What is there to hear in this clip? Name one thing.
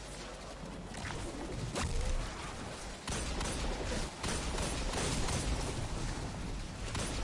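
Energy guns fire in rapid bursts.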